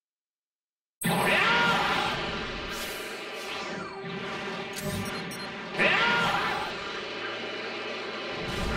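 A loud rushing whoosh of fast flight sweeps past, with swelling gusts.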